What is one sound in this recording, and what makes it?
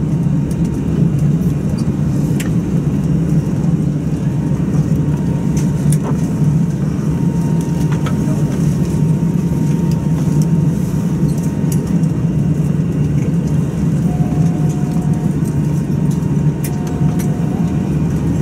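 A jet engine hums and rumbles steadily as an airliner taxis.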